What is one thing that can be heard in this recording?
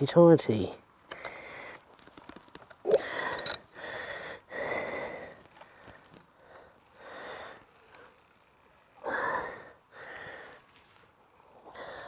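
Metal parts of a bicycle click and rattle as they are handled.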